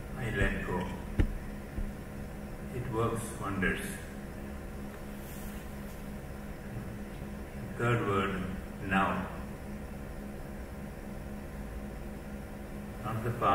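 An elderly man speaks slowly and calmly through a microphone in an echoing hall, with long pauses.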